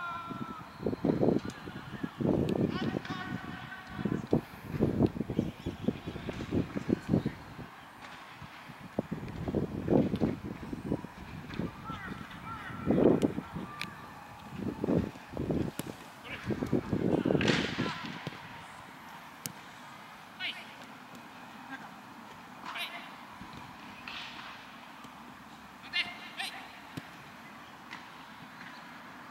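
Young players call out to each other across an open field.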